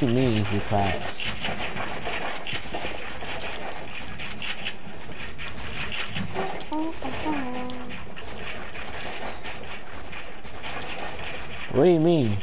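Building pieces snap into place with quick clattering knocks.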